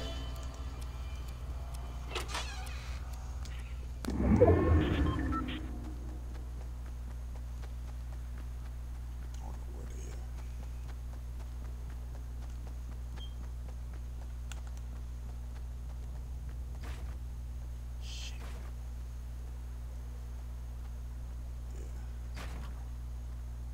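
Footsteps patter softly on wooden boards and grass.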